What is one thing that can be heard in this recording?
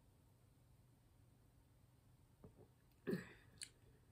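A woman sips from a glass.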